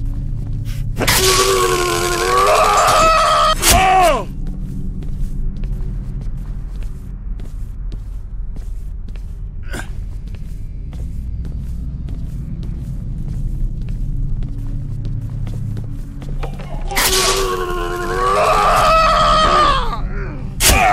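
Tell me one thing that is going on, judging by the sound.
A zombie lets out a loud, wavering groan.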